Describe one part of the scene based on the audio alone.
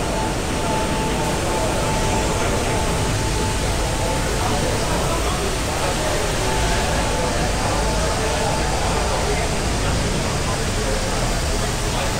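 Water sprays loudly from a fire hose.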